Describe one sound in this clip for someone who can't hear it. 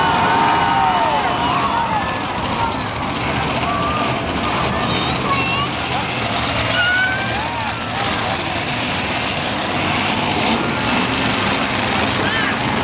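A crowd cheers and whistles outdoors.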